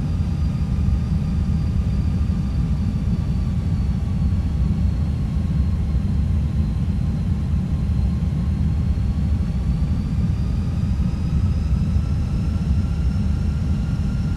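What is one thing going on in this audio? Jet engines drone steadily with a thin whine that slowly shifts in pitch.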